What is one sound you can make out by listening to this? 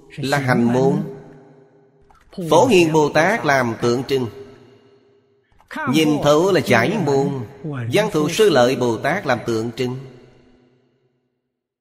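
An elderly man speaks calmly and slowly into a close microphone, pausing between phrases.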